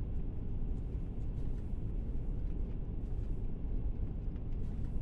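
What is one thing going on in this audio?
A train rumbles low and steadily.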